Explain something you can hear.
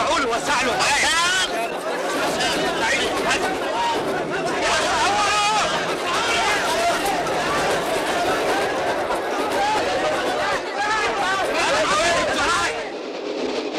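A crowd of men shouts and clamours close by.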